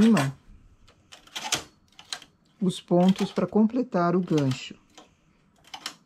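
Metal knitting machine needles click softly as a tool moves along them.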